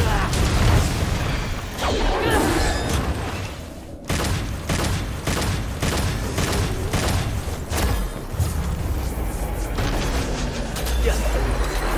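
Sword blows and magic blasts crash and whoosh in rapid bursts.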